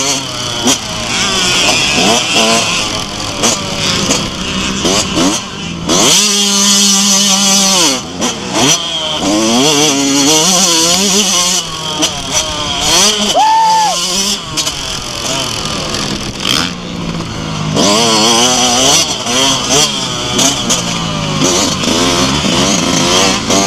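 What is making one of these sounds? A small engine whines close by, revving up and down sharply.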